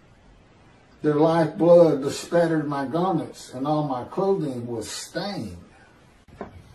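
An elderly man speaks calmly into a microphone, close up.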